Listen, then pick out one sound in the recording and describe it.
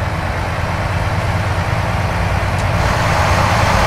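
A passing truck rushes by.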